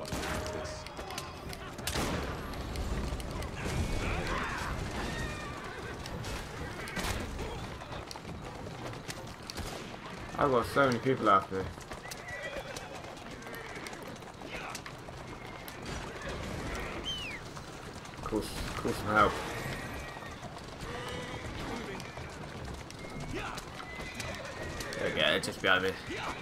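Horse hooves clop steadily on a street.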